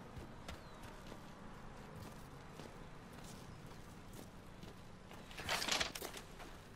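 Footsteps run over hard ground and grass.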